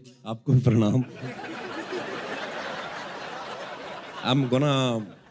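A large audience laughs.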